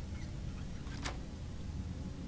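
A lock clicks open.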